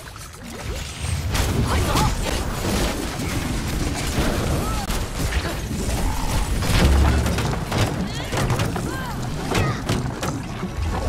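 Game characters clash with rapid hits and impacts.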